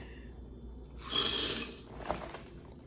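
Dry cereal rattles as it pours into a bowl.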